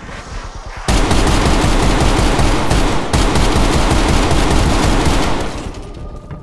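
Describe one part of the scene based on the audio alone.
A rapid burst of automatic gunfire rattles loudly.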